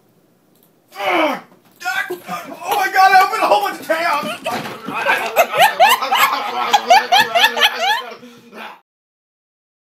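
A man laughs and shouts excitedly close by.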